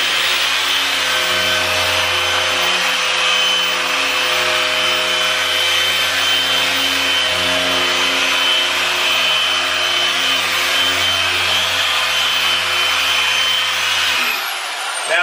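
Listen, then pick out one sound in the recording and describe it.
A polishing machine whirs steadily, close by.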